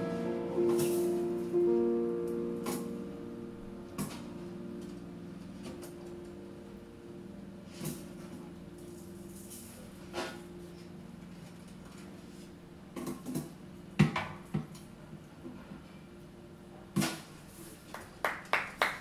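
A piano plays sustained chords that ring and slowly fade.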